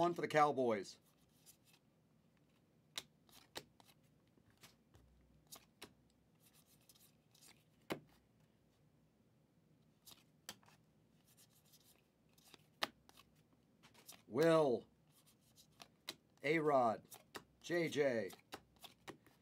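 Trading cards click and rustle as they are shuffled by hand.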